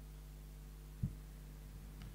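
A cup is set down on a table with a soft knock.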